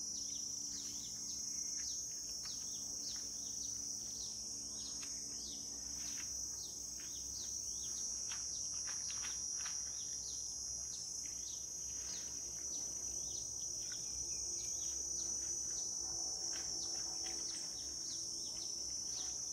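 Footsteps rustle through dense brush and grass some distance away.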